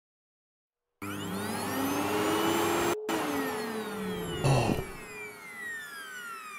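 A leaf blower roars, blowing air.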